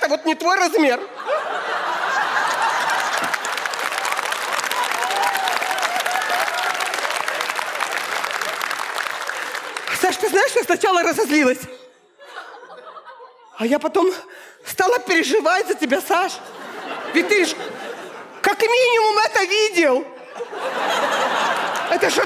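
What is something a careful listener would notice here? An audience laughs and applauds loudly.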